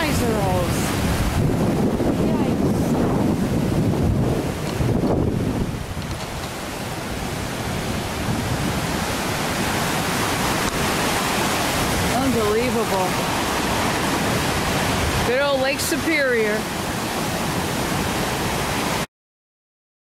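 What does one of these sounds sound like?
Waves crash and wash over a rocky shore.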